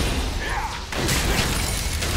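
A magical beam strikes down with a loud burst.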